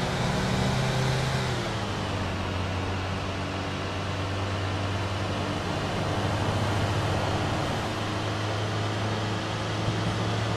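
A van engine hums steadily as it drives along a road.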